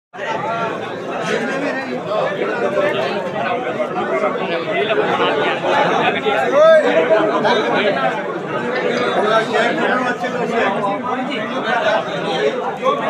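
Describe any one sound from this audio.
A crowd of men talk and call out over one another nearby, in an echoing room.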